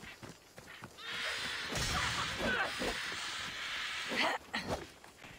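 Large birds flap their wings noisily as they take off.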